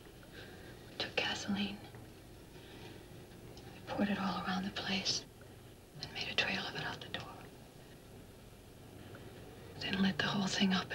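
A woman speaks calmly and gently, close by.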